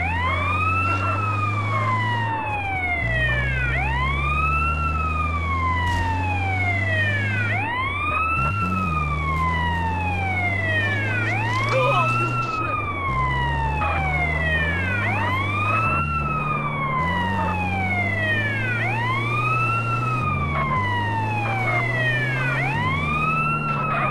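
A vehicle engine hums low and shifts pitch as it speeds up and changes gear.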